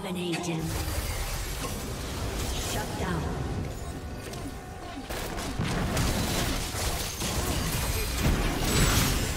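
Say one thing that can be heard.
Magic spells whoosh and crackle in a noisy fantasy battle.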